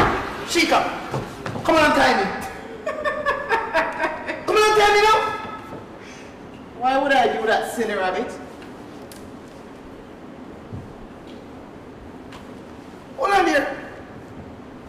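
A young man shouts and cries out loudly, with a slight room echo.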